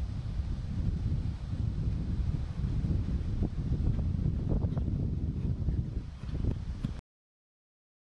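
Wind rumbles outdoors across the microphone.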